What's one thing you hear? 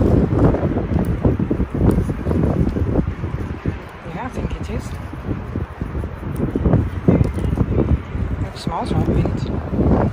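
Wind blows outdoors and rustles leaves.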